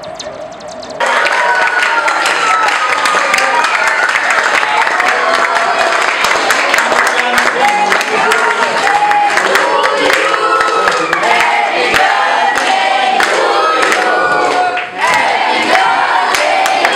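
Several people clap their hands along with the singing.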